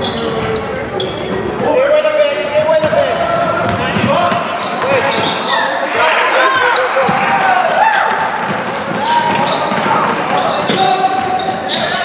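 A crowd of spectators murmurs and cheers.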